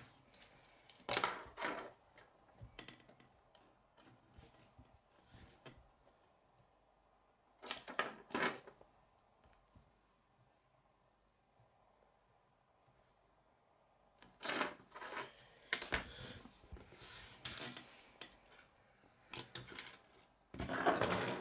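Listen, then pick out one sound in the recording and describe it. Plastic construction pieces click and rattle as a hand moves them on a wooden table.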